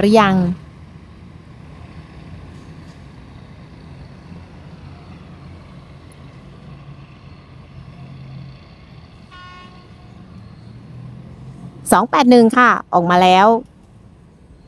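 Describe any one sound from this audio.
A train horn blows loudly several times.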